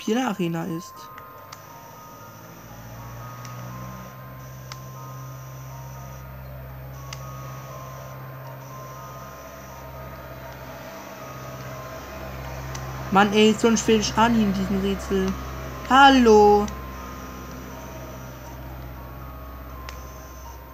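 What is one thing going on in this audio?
Electronic game music plays softly from a small handheld speaker.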